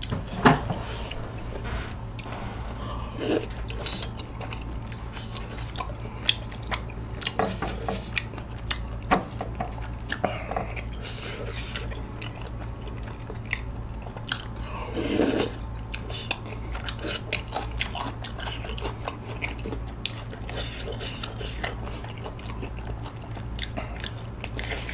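A young man chews and slurps chewy rice cakes in sauce close to a microphone.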